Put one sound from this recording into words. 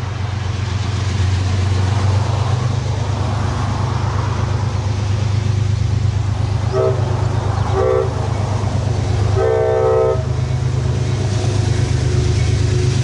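A train rumbles as it approaches from far off.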